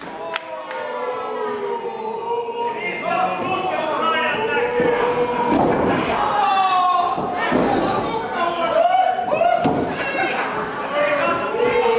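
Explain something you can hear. A crowd of men and women shouts and cheers in an echoing hall.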